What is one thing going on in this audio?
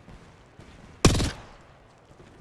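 A gun fires a short burst of shots.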